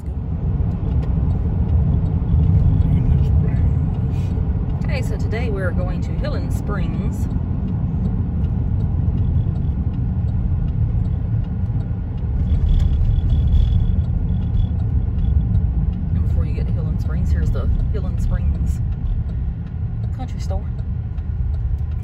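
A car drives steadily along a road, its engine and tyres rumbling low.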